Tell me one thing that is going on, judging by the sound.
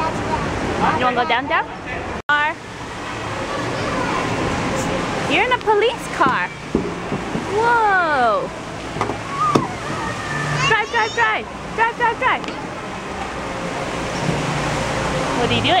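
A young child babbles and squeals close by.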